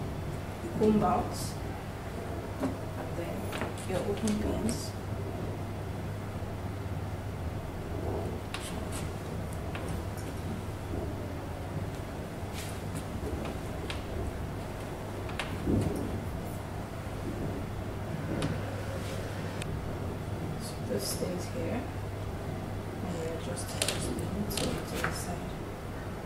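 Small hairpins click faintly now and then.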